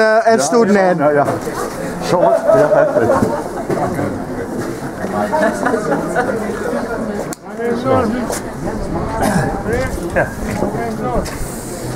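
A crowd of men and women chatter outdoors in the background.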